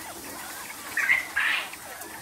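A caged bird lets out a loud squawk.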